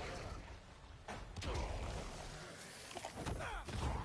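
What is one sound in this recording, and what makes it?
A monstrous creature roars.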